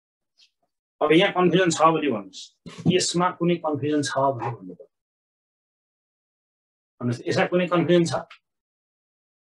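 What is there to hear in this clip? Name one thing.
A man speaks calmly and clearly close to a microphone, explaining.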